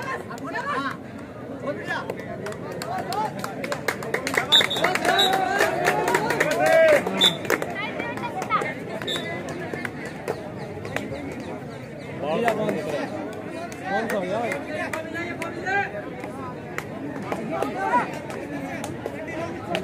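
A crowd of young people shouts and cheers outdoors.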